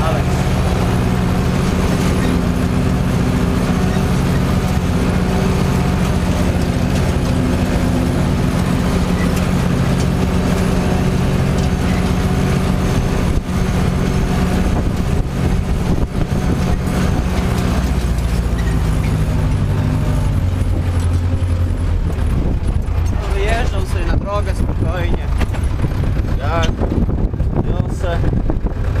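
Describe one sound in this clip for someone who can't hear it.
A tractor engine rumbles steadily up close, heard from inside the cab.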